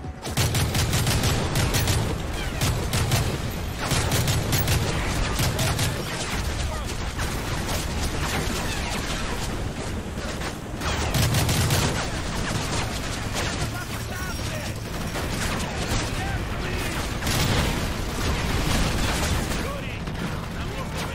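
Rapid gunfire bursts loudly and repeatedly.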